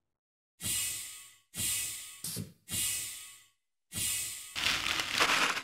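Sharp whooshing game sound effects play in quick bursts.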